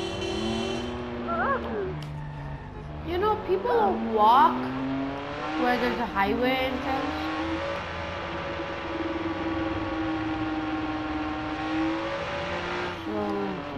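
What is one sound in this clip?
A car engine revs hard and roars as the car speeds up.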